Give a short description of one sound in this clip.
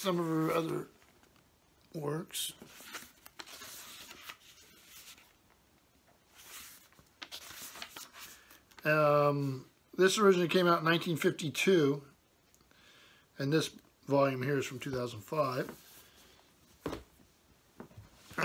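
Book pages rustle as they are handled.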